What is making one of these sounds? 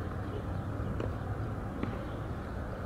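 A tennis ball bounces on a hard court a couple of times.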